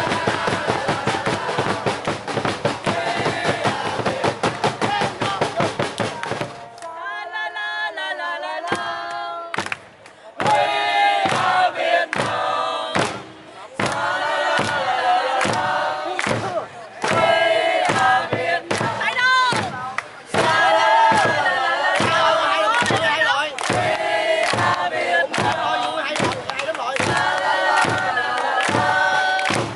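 A crowd of young men and women sing and chant together loudly outdoors.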